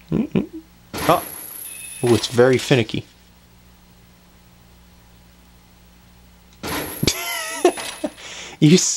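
A bright magical chime twinkles.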